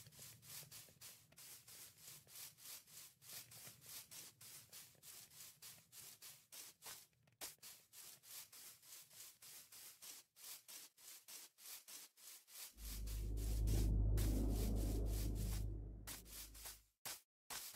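Footsteps crunch steadily over grass and dirt.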